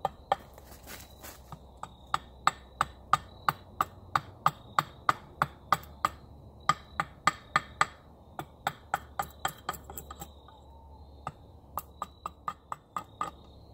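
A hatchet taps rapidly and sharply against a wooden stake.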